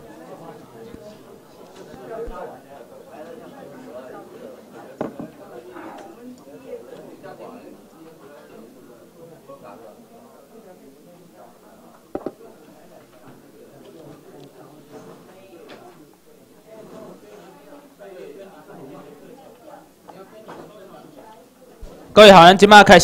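A man speaks steadily through a microphone in a large room.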